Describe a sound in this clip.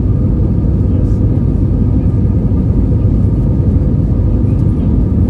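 A jet airliner's engines roar steadily in flight, heard from inside the cabin.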